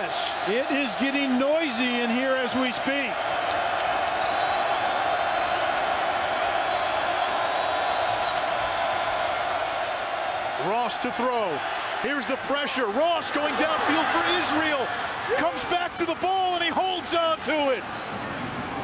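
A large crowd roars in a big stadium.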